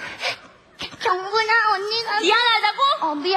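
A woman speaks loudly and with animation through a microphone.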